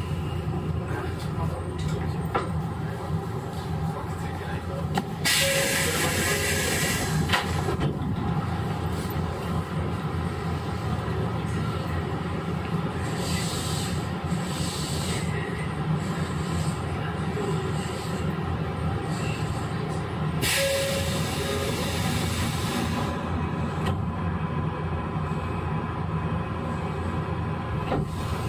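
An electric train hums steadily close by.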